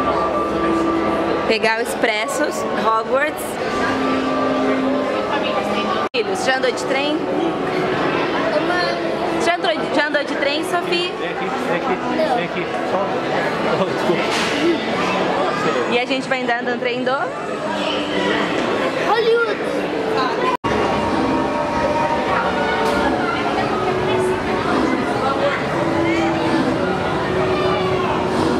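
A crowd of people chatters nearby in an echoing space.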